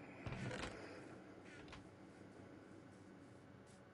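A wooden chest lid creaks shut.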